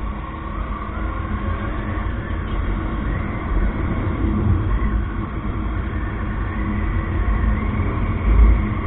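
Wind rushes past the rider.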